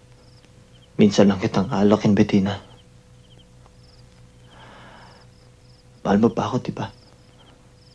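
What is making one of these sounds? A young man speaks in a low, tense voice, close by.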